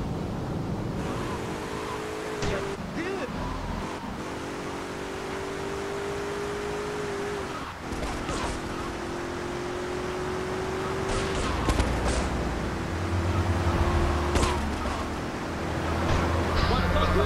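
A car engine hums steadily as the car drives along.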